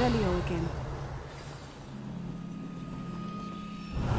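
A magical shimmer hums softly.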